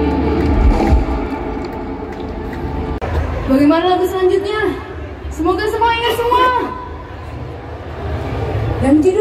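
A band plays loud live music through a large outdoor sound system.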